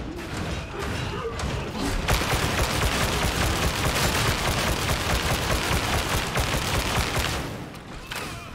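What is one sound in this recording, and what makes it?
A heavy gun fires in fast, loud, continuous bursts.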